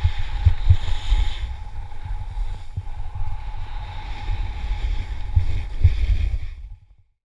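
Wind rumbles hard against the microphone.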